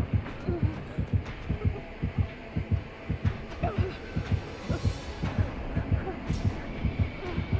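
A heartbeat thumps quickly and steadily in low, heavy double beats.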